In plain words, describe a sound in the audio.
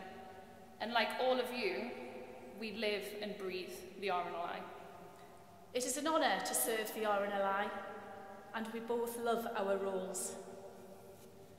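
A woman reads out into a microphone, heard through loudspeakers in a large echoing hall.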